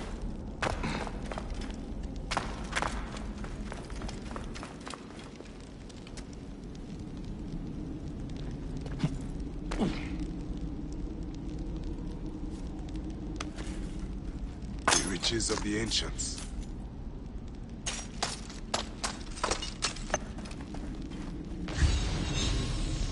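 Footsteps scuff over stone.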